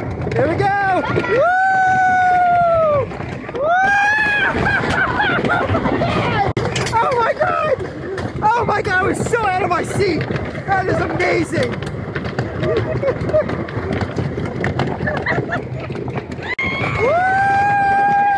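A roller coaster rattles and clatters along wooden tracks.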